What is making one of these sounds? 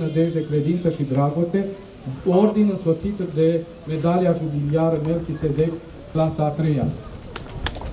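A man chants a prayer through a microphone outdoors.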